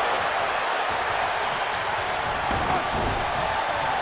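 A heavy body thuds onto a wrestling mat.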